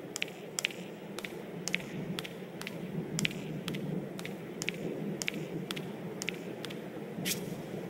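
Light footsteps tap at a steady pace.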